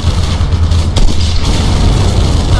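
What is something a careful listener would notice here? A blast booms with a sharp crack.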